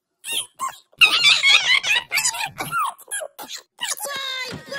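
A small cartoon creature babbles excitedly in a high, squeaky voice.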